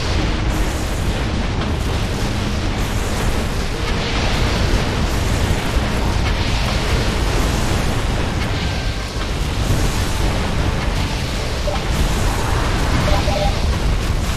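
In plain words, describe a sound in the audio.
Synthesized laser blasts crackle.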